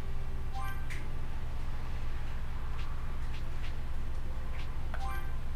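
A short bright electronic chime rings twice.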